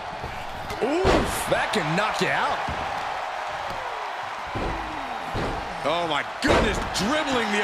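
Heavy thuds ring out as a body slams onto a wrestling mat.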